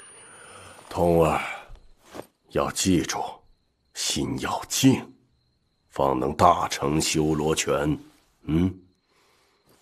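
An elderly man speaks calmly and firmly.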